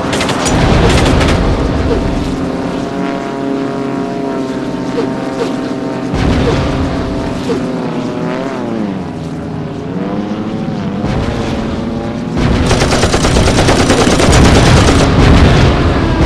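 A propeller plane's engine drones steadily, rising and falling in pitch.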